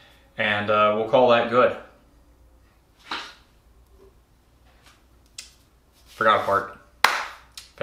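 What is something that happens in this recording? A man speaks calmly and close by, with pauses.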